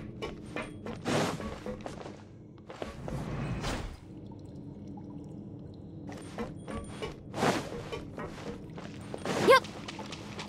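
Light footsteps patter quickly on hard ground.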